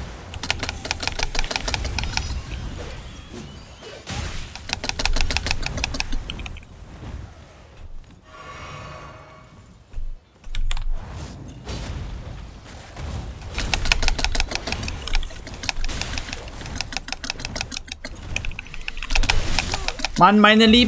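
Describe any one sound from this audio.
Sword blows clash and thud in a game fight.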